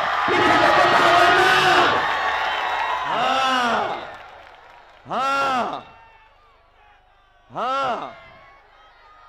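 A man shouts slogans through loudspeakers, outdoors with an echo.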